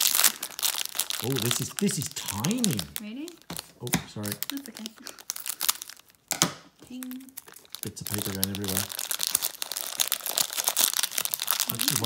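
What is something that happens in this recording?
A foil packet crinkles and rustles in hands.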